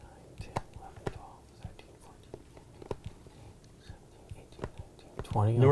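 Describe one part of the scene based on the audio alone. Fingertips tap lightly on a board.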